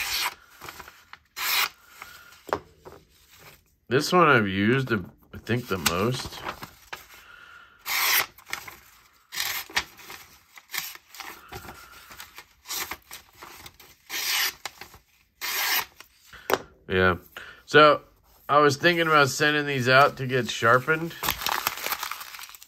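A sharp knife slices through paper with short, crisp swishes.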